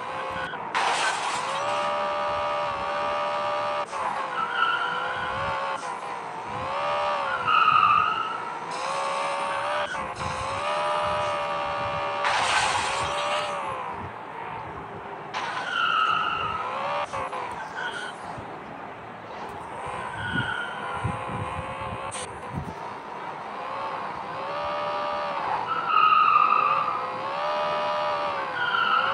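A car engine revs up and down repeatedly.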